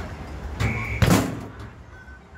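A foot kicks a ball hard with a loud thump.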